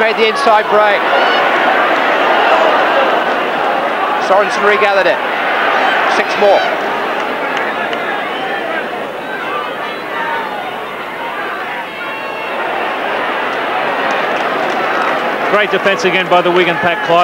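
A large crowd roars and cheers throughout a stadium.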